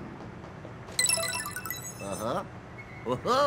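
A bright chiming jingle plays.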